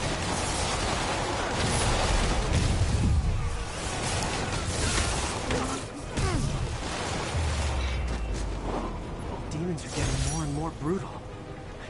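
Punches and kicks thud in a close fight.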